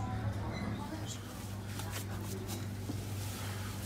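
Hands scrape and rustle through dry spice powder in a metal pot.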